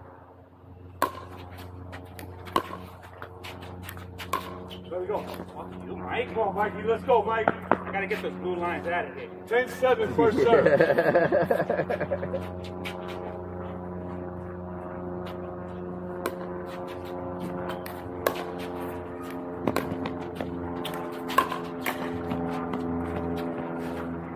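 Pickleball paddles pop sharply against a ball.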